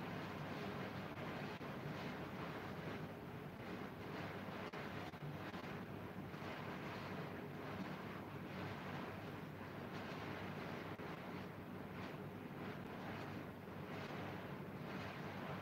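An electric fan whirs steadily nearby.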